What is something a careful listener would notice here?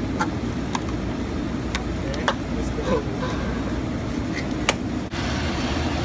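A straw pokes through a plastic lid with a crackle.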